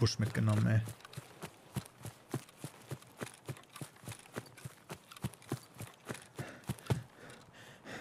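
Footsteps rustle through tall grass at a steady pace.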